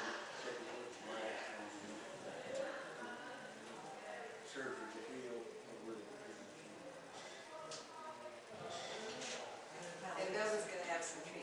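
A man speaks calmly at a distance in an echoing room.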